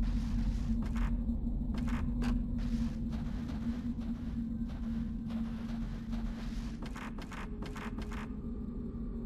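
Footsteps tap slowly on a wooden floor.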